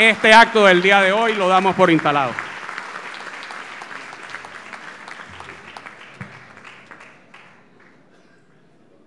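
An audience applauds, then the applause fades.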